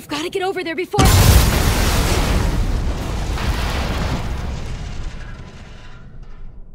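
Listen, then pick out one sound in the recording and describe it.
A loud crash booms and rumbles away.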